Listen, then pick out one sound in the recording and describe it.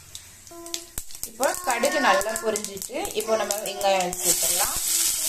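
Mustard seeds crackle and pop in hot oil.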